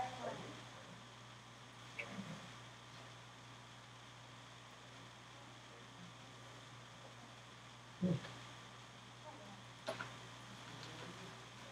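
A ventilation fan hums steadily.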